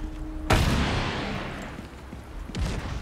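A gunshot booms and echoes.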